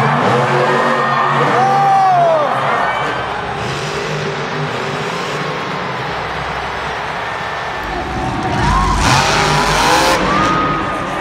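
A monster truck engine roars loudly.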